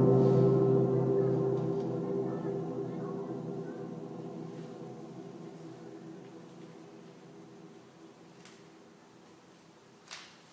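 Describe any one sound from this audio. A piano-like keyboard chord rings out and slowly fades away.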